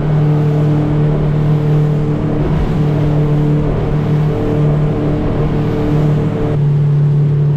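Water churns and splashes in a boat's wake.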